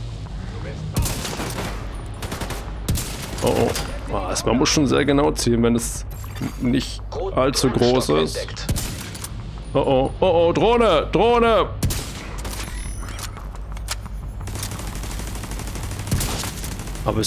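Rifle shots crack sharply now and then.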